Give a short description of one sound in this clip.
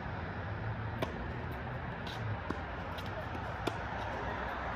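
A tennis racket strikes a ball with sharp pops.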